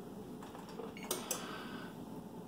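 An oven control panel beeps once as a button is pressed.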